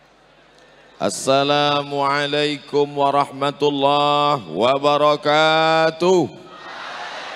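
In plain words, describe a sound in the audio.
A man chants loudly through a microphone in a large echoing space.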